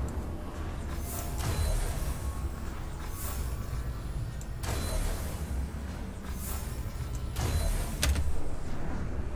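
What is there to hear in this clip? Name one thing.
Blades strike in quick, sharp hits.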